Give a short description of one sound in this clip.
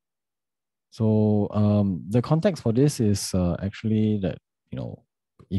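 A young man speaks calmly and closely into a microphone.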